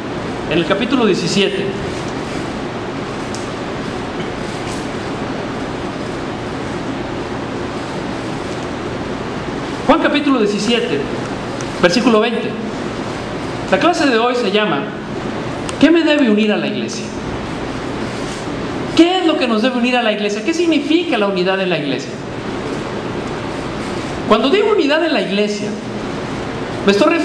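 A man speaks into a microphone in short bursts, his voice echoing through a large, bare room.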